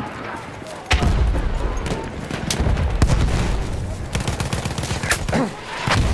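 Explosions rumble nearby.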